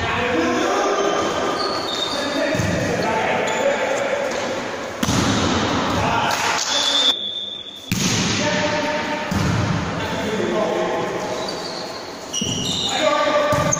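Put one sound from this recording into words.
A volleyball is struck with a hand with sharp slaps.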